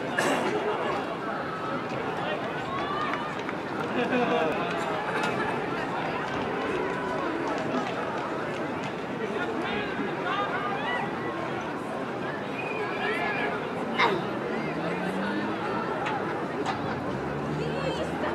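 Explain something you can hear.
A crowd of people chatters in the stands outdoors.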